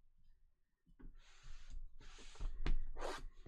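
Cardboard boxes slide and scrape against each other.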